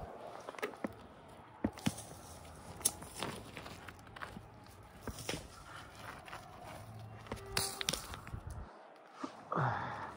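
Rocks clatter and scrape on a dirt trail as they are tossed aside.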